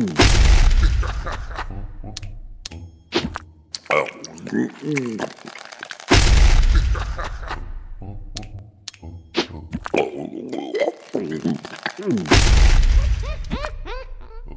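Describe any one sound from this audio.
Cartoon creatures in a game squeak and chatter in quick, gliding tones.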